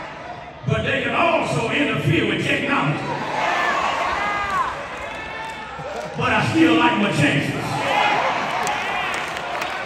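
A crowd of people calls out and cheers in response.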